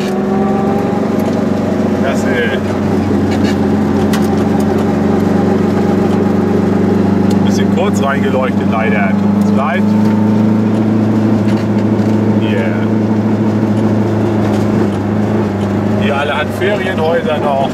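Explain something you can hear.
An engine hums steadily from inside a moving vehicle.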